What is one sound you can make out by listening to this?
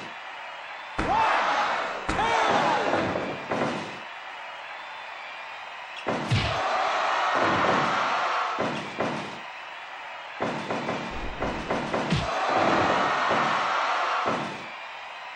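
A crowd cheers and roars in bursts.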